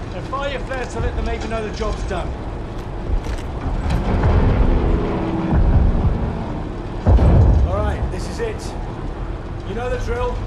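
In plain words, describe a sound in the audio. Aircraft engines drone steadily and loudly.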